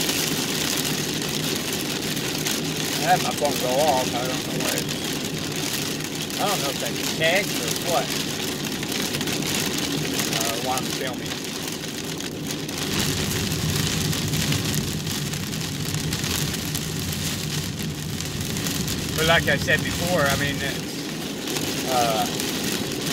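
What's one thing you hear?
Heavy rain drums steadily on a car's windscreen.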